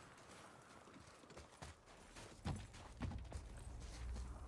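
Heavy footsteps crunch on snow and stone.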